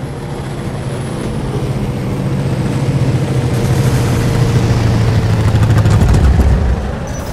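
A propeller plane drones low overhead and fades away.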